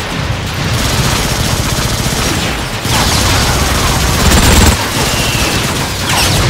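Energy blasters fire in rapid bursts.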